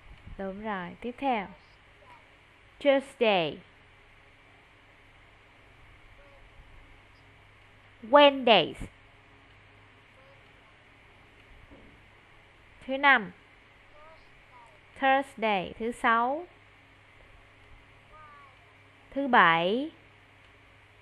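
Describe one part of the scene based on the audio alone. A young boy speaks loudly in short bursts over an online call.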